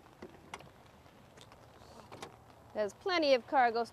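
A car's tailgate unlatches and lifts open.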